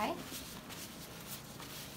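A cloth wipes softly across skin.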